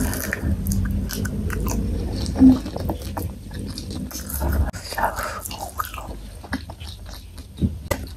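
A young woman chews food wetly, close to a microphone.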